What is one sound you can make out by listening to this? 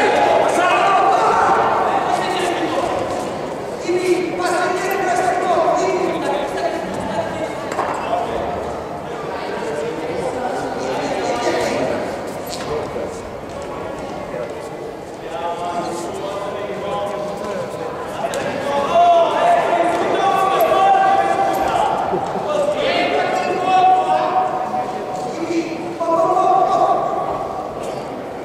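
Spectators shout and call out in a large echoing hall.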